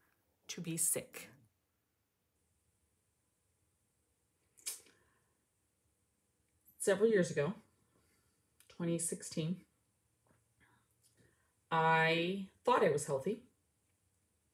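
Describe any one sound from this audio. A middle-aged woman talks calmly and close by, in short bursts with pauses.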